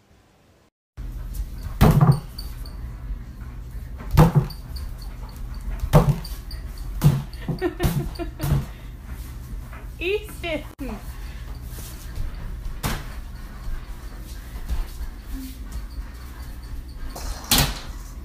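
Small bare feet patter on a wooden floor.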